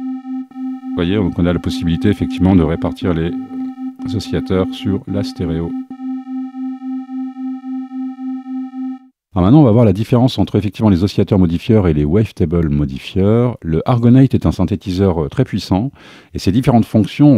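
A synthesizer plays rhythmic electronic bass and drum patterns.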